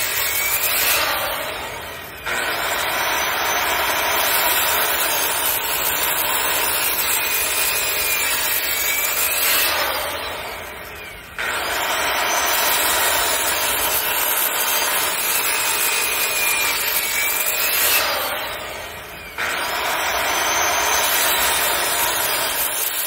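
A circular saw buzzes loudly as it cuts into wood, winding down and starting up again several times.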